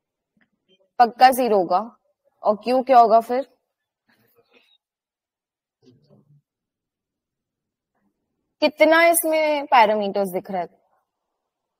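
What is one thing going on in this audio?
A young woman speaks calmly through a microphone, in short phrases with pauses.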